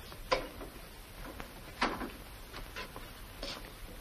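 A wooden door clicks shut.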